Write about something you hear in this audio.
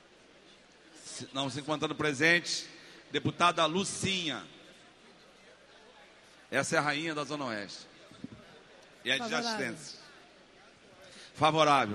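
A man speaks through a microphone in short bursts, echoing in a large hall.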